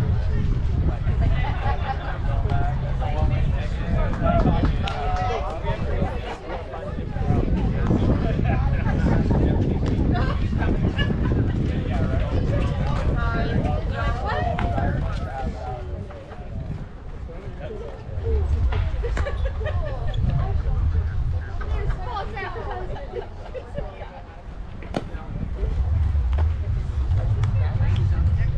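Young players shout and call out across the field.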